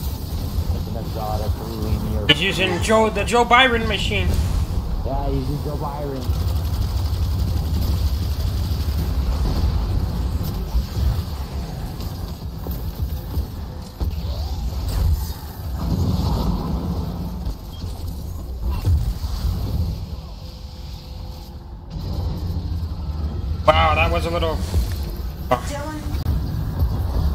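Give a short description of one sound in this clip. A young man talks casually into a close microphone.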